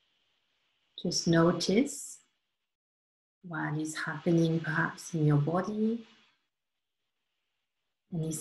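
A woman speaks calmly and softly, heard close through an online call.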